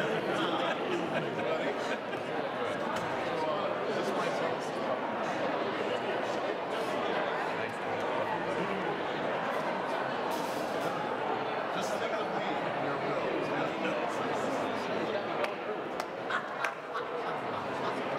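Many people chat and murmur in a large echoing hall.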